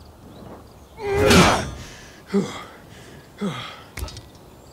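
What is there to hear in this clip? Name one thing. A climber scrambles up against a tree trunk.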